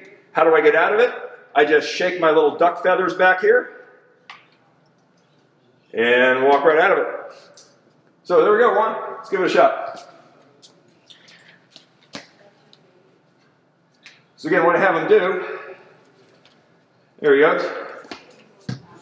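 An older man speaks calmly and clearly into a close microphone, in bursts with pauses.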